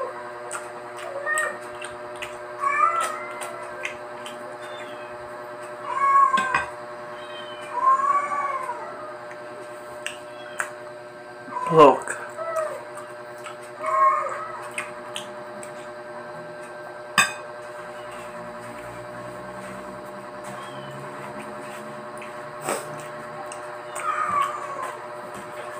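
A metal spoon clinks against a bowl.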